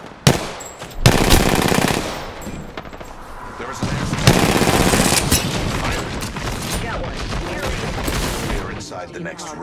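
A rifle fires in bursts.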